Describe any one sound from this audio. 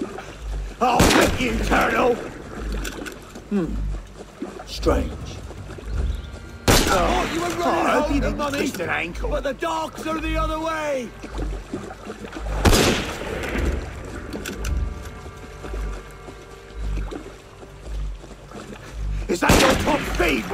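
Gunshots crack loudly every few seconds.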